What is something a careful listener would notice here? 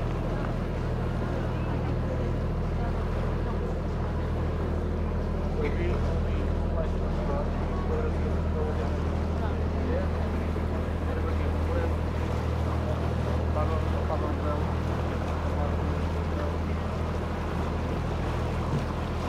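Water splashes gently against a boat's hull.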